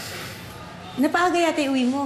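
A woman speaks loudly and with emotion close by.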